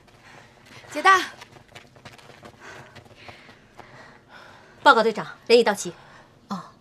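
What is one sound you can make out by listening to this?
A young woman calls out loudly.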